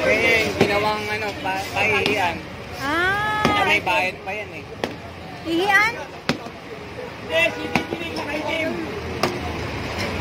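A sledgehammer strikes concrete with sharp knocks.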